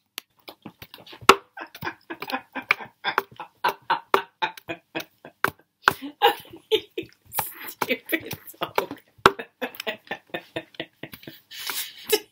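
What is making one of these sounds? A woman laughs happily over an online call.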